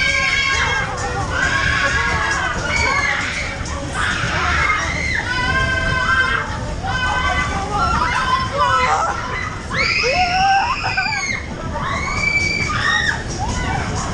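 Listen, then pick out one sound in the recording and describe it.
Loud music with a heavy, thumping beat plays through powerful speakers.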